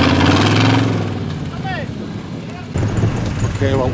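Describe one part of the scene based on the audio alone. A car engine revs loudly in mud.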